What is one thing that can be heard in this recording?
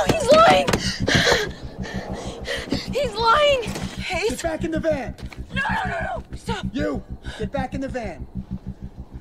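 A woman shouts frantically and in panic, close by.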